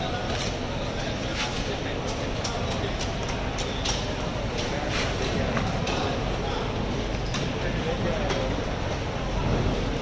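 Ice crunches under a heavy fish being moved.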